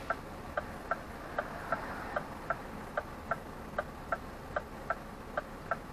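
A car drives slowly past close by.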